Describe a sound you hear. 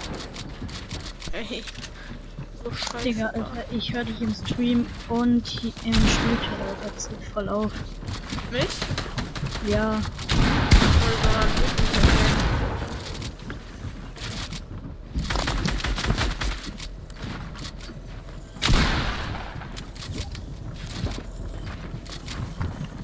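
Building pieces clatter and click into place in quick bursts.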